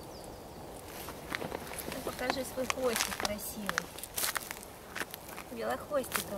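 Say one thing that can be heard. A squirrel gnaws and nibbles at food with quick crisp clicks.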